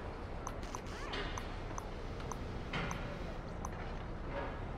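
Soft electronic ticks sound in quick succession.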